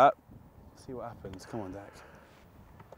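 A young man talks casually nearby.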